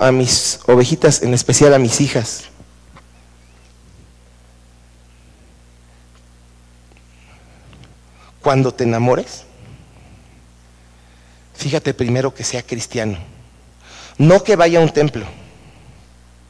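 A man speaks calmly through a microphone, in bursts with pauses.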